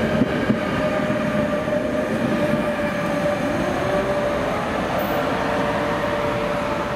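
An electric locomotive hums as it passes.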